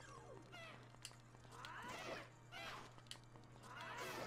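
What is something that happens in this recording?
A sword swishes and clangs.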